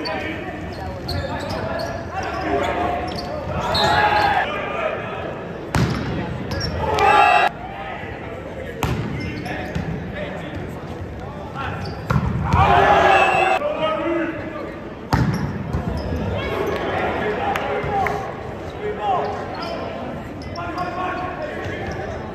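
A crowd of spectators talks and murmurs in a large echoing gym.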